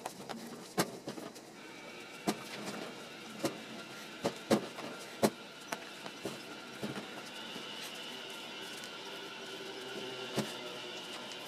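Hands knock and thump against a wooden board.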